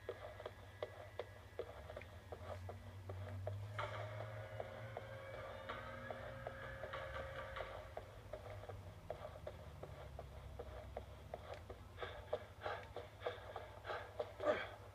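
Footsteps run quickly across a floor.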